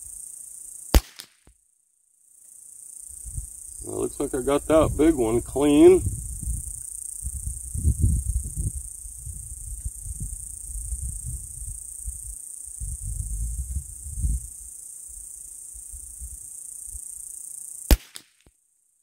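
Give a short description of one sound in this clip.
A rifle fires two sharp, loud shots.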